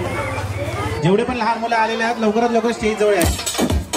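A man speaks animatedly into a microphone over loudspeakers.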